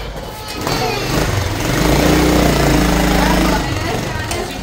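A motorcycle engine starts and revs loudly.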